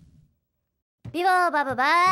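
A high, squeaky cartoon voice chatters excitedly.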